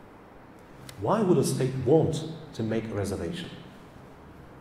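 A middle-aged man speaks into a microphone over a loudspeaker in a room.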